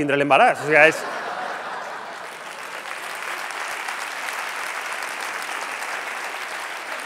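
An audience claps and cheers in a large hall.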